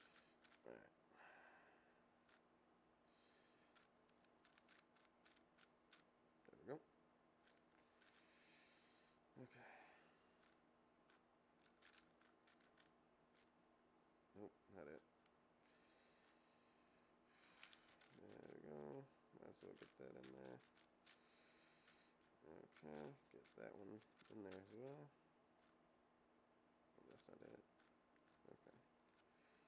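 A puzzle cube clicks and clacks as it is turned quickly.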